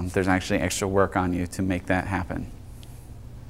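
A man speaks calmly to an audience.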